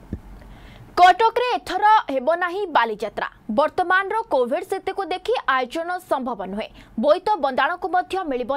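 A young woman speaks clearly and steadily into a microphone, as if reading out news.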